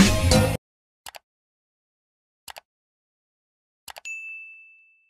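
A mouse button clicks several times.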